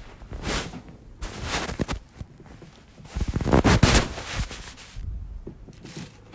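A phone rubs and rustles as it is handled close by.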